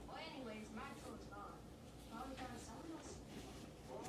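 A sofa seat lid thuds shut.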